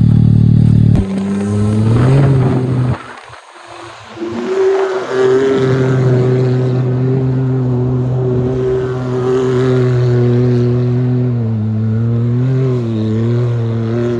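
A turbocharged side-by-side UTV engine revs as the vehicle slides across ice.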